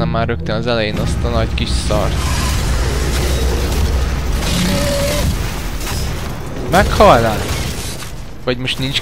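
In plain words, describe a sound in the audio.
Rockets explode with heavy booms.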